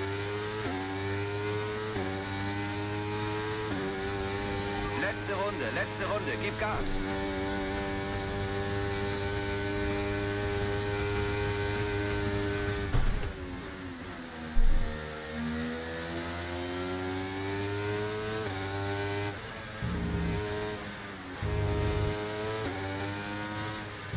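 A racing car engine whines loudly, rising in pitch and dropping sharply with each gear change.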